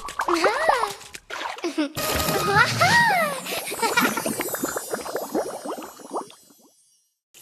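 Jelly squelches and wobbles with wet, bubbly pops.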